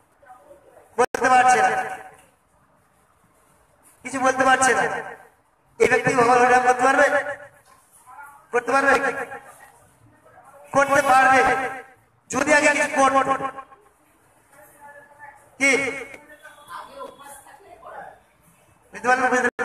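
A man sings loudly through a microphone in short phrases with pauses between them.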